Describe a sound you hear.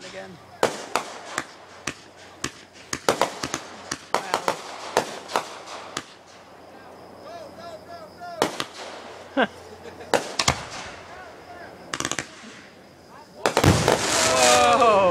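Fireworks pop, bang and crackle in rapid bursts.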